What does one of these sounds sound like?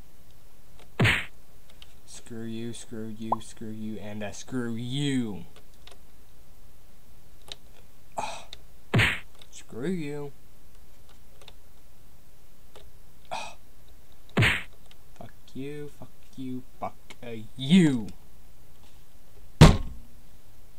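A short electronic sound effect plays several times.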